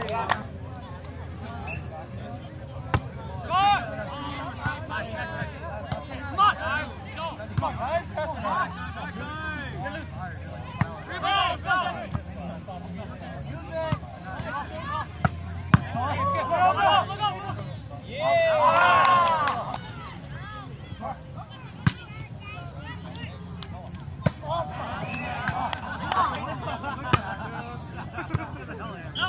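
A crowd of young men and women shouts and chatters outdoors.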